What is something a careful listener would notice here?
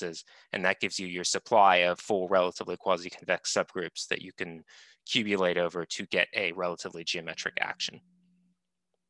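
A man lectures calmly through a microphone on an online call.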